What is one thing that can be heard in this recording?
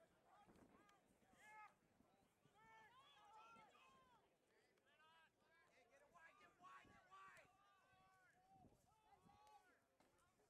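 Men on the sideline call out loudly nearby.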